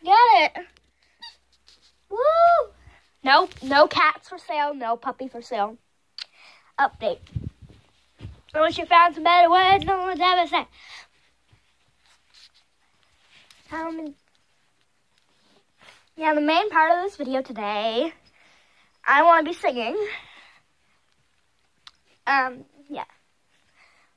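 A young child talks and sings with animation close to a microphone.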